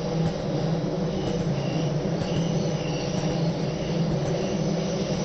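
A train's engine rumbles steadily as it rolls along the track.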